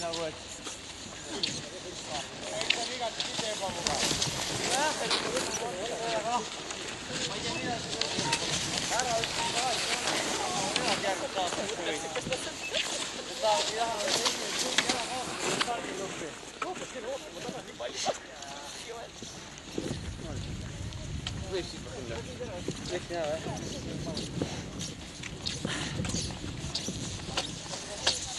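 A crowd of men and women cheer and shout encouragement outdoors.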